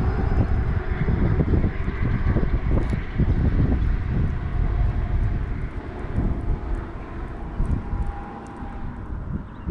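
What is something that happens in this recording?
Wind blusters loudly across the microphone outdoors.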